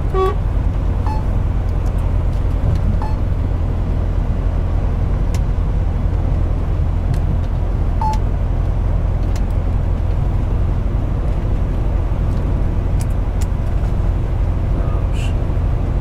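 A heavy engine drones steadily from inside a cab.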